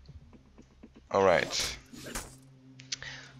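Swords swish and slash through the air.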